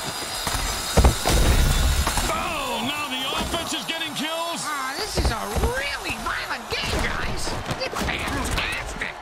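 Armoured players crash into each other with heavy thuds.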